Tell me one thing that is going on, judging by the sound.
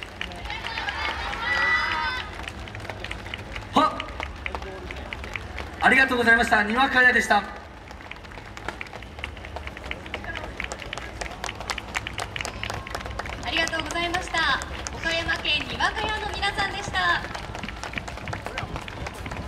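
Wooden hand clappers clack rapidly in rhythm.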